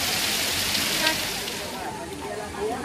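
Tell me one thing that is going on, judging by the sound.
Water pours steadily from a spout onto a man.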